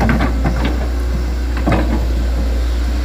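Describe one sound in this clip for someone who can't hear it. An excavator bucket scrapes and thuds into wet soil.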